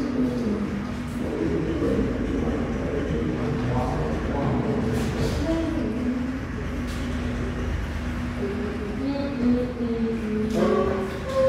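Several children talk and chatter nearby in a room.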